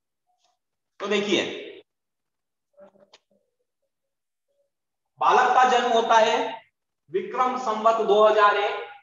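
A middle-aged man speaks with animation, heard through an online call.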